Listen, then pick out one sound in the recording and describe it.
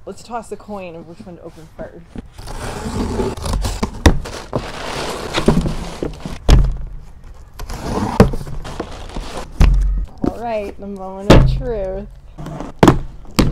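Cardboard boxes rustle and thump as they are handled.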